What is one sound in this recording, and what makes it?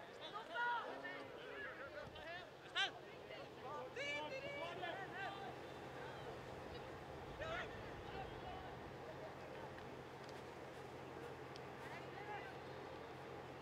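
Young boys shout to each other across an open field.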